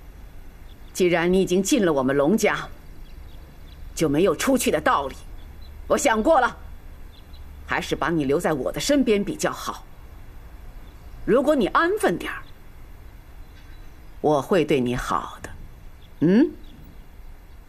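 A middle-aged woman speaks calmly and firmly, close by.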